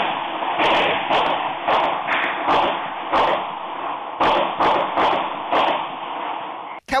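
Gunshots ring out one after another.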